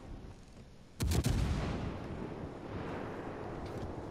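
Heavy ship guns fire a loud, booming salvo.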